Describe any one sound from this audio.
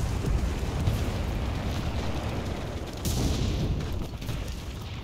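A tank engine rumbles and clanks nearby.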